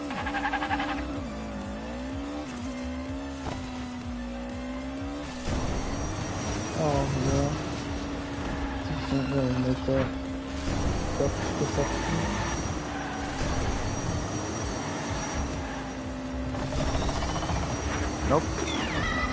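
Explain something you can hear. A racing car's engine hums steadily, rising and falling in pitch.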